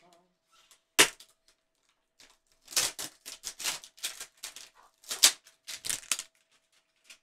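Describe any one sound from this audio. Plastic packaging crinkles and rustles as a box is handled.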